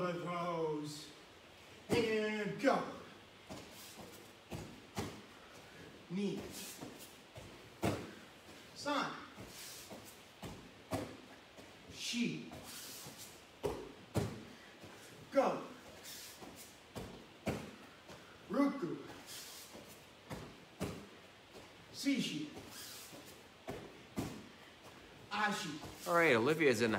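A young man's hands and feet thud on a padded mat.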